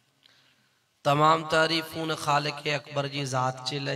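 A man chants loudly into a microphone through a loudspeaker.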